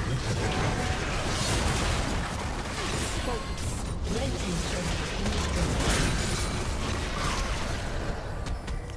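Video game spells whoosh and crackle in a busy fight.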